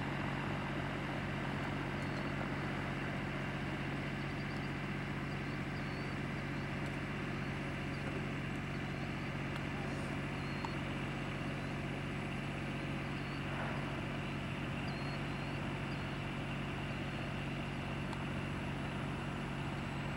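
A blimp's engines drone steadily overhead.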